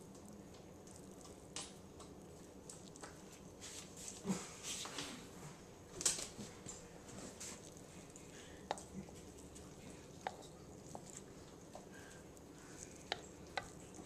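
Hands rustle and squish through pieces of cooked chicken in a bowl.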